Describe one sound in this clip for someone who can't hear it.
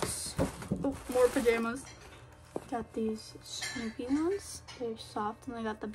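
A young woman talks calmly and cheerfully, close up.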